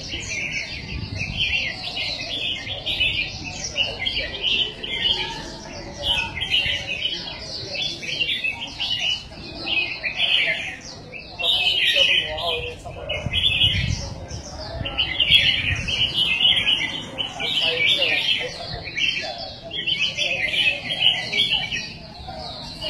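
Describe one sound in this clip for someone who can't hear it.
Many small caged birds chirp and twitter busily.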